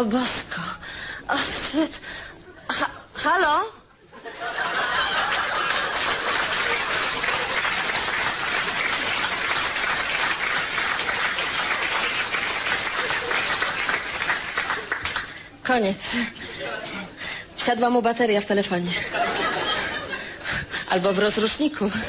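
A woman speaks angrily into a phone, close by.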